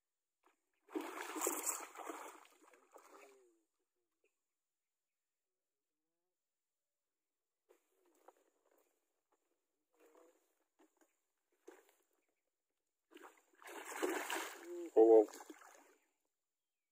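A hooked fish splashes and thrashes in the water.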